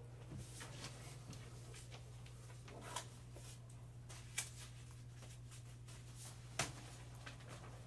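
A man speaks calmly across a room.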